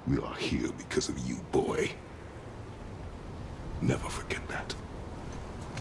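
A man speaks in a deep, low voice, close by.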